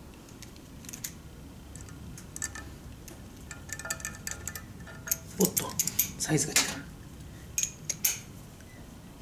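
Metal tools clink against a metal tray.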